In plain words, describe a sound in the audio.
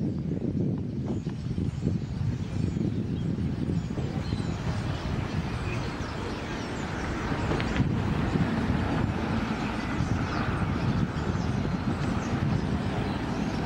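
A huge flock of birds chirps and twitters overhead.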